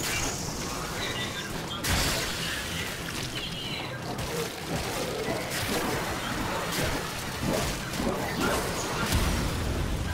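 Sword slashes whoosh and clang in quick bursts.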